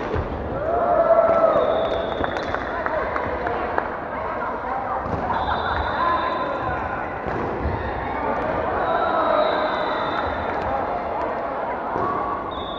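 Shoes squeak sharply on a wooden floor in a large echoing hall.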